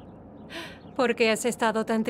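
A woman speaks up close with animation.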